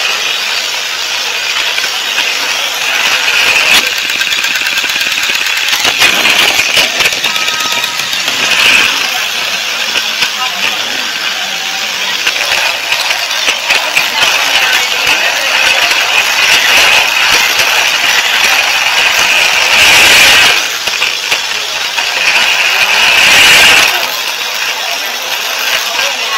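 Toy train wheels clatter over track joints.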